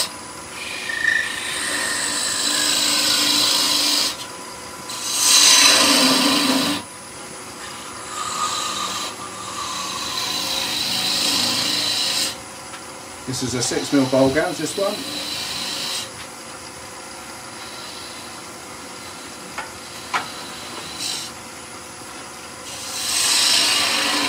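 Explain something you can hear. A wood lathe hums steadily as it spins.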